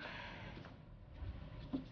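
A woman's shoes tap on a hard floor.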